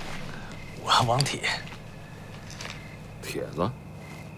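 A middle-aged man asks something in a gruff voice, close by.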